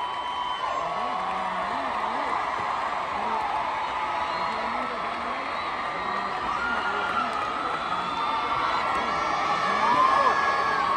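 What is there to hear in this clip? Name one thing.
A huge crowd cheers and screams loudly in a large echoing arena.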